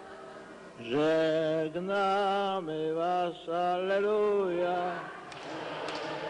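An elderly man sings slowly into a microphone.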